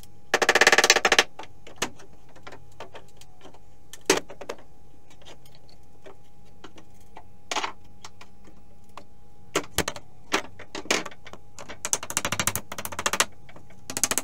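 Wooden floorboards creak and crack as they are pried up.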